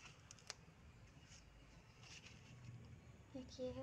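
Stiff paper cards rustle and slide as they are flipped.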